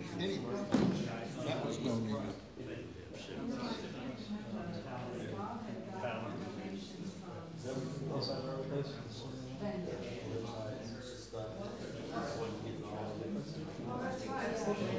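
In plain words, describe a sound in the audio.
A man speaks calmly to an audience through a microphone in a room with some echo.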